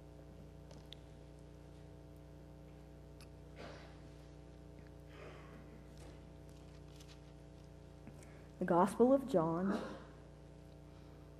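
An organ holds a steady chord.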